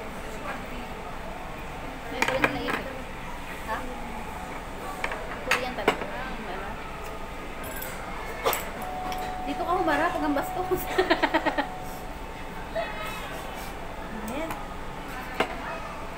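Metal utensils clink against bowls.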